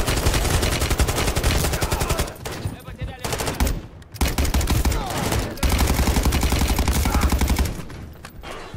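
Automatic rifle fire rattles rapidly in loud bursts.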